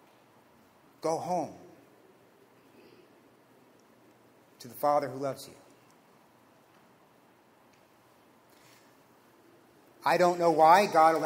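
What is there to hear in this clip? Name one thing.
A man speaks slowly and expressively through a microphone, with long pauses, in a softly echoing room.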